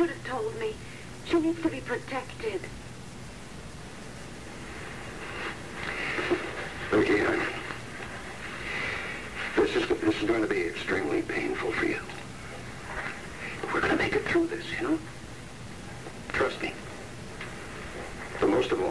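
A man speaks calmly in a low voice, with short pauses.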